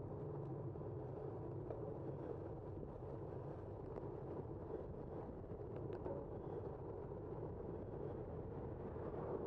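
A car drives steadily along a road, with a low rumble of tyres and engine.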